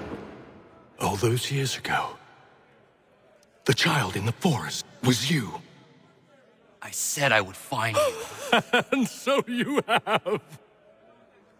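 An older man speaks in a low, menacing voice close by.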